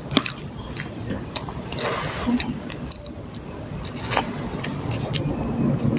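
A boy eats noisily, with small clicks and smacks of his mouth.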